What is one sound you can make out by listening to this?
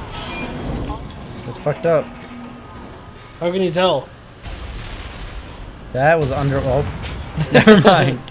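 Energy blasts crackle and roar.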